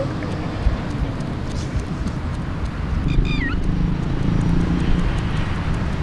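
A small dog's paws patter on asphalt.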